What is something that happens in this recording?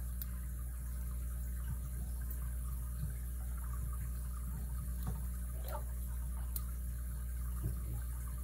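Small metal picks scrape and click faintly inside a lock.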